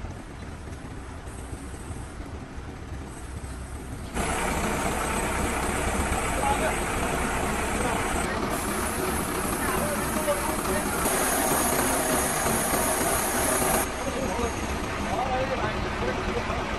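A truck crane's engine runs with a steady low rumble.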